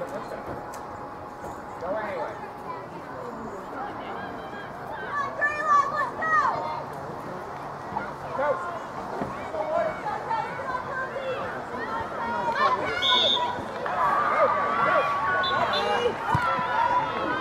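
Young girls shout and call out across an open field in the distance.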